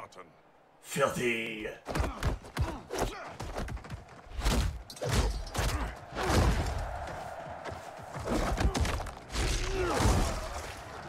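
Heavy punches and blows thud and crack in quick bursts.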